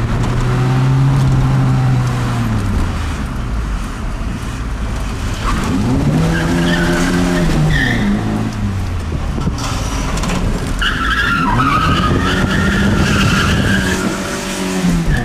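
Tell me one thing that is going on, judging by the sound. A car engine revs up and down as the car accelerates and shifts gears.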